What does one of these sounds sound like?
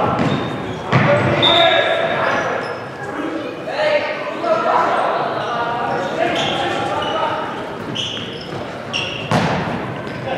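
A ball thuds sharply off a foot.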